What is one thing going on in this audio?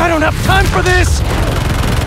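An explosion bursts with a heavy boom.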